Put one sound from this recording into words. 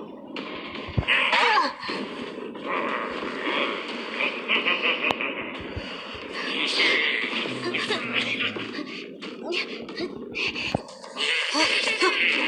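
A heavy club swings and strikes with a thud.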